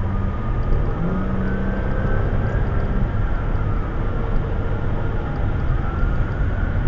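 A car's engine hums steadily.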